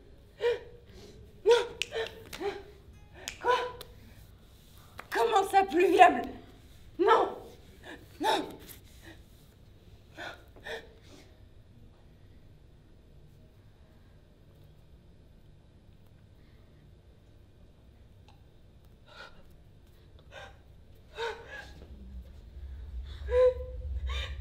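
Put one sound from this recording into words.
A young woman cries out in short, breathy bursts close by.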